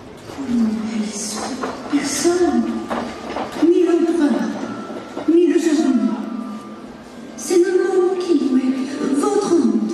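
A horse-drawn wooden cart rumbles and creaks as it rolls.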